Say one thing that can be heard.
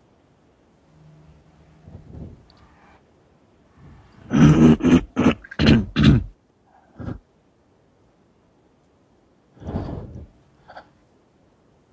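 A man speaks over an online call in short bursts.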